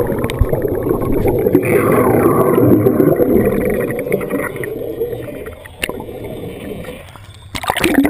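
Air bubbles from a diver's regulator rumble and gurgle underwater.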